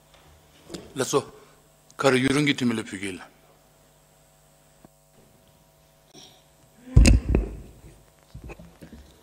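A middle-aged man speaks into a microphone in a large room, in short bursts with pauses.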